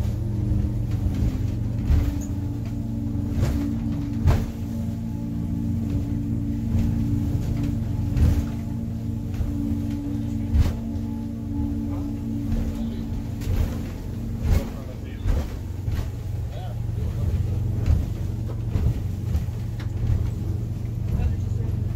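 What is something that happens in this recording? Waves splash and slap against a boat's hull.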